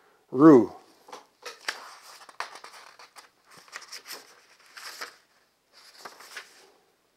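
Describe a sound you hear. Paper pages rustle and flip.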